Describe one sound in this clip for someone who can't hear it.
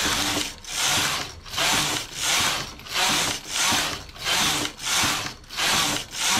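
A knitting machine carriage slides back and forth across the needle bed with a rhythmic whooshing rattle.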